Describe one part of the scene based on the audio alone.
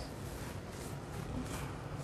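An eraser rubs across a board.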